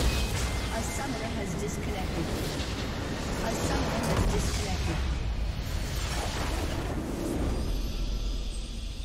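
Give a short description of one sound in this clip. Game battle effects clash and crackle loudly.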